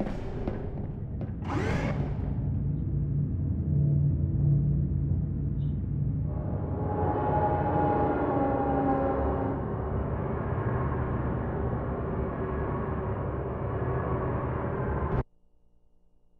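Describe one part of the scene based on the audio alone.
A lift hums steadily as it moves, then falls silent.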